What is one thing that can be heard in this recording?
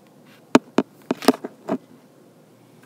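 Plastic toy bricks click and clatter against a hard surface.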